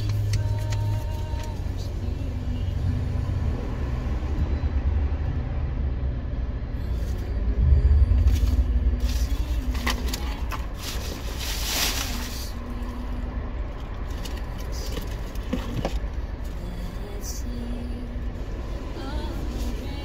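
A car engine idles with a low rumble nearby.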